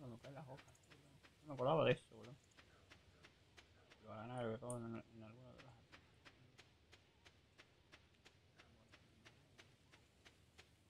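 Quick light footsteps patter steadily on dirt.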